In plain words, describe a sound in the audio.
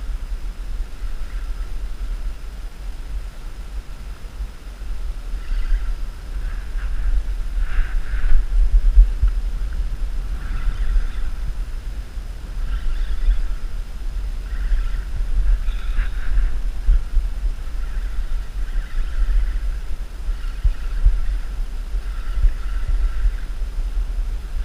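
Wind rumbles and buffets across the microphone outdoors.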